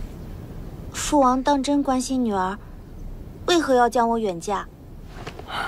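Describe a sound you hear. A young woman speaks in a sad, pleading voice, close by.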